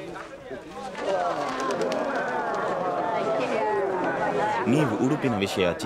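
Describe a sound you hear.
A crowd of men and women cheers and shouts joyfully outdoors.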